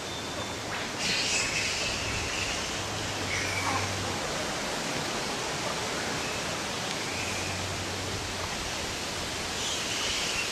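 A grey-headed flying-fox screeches.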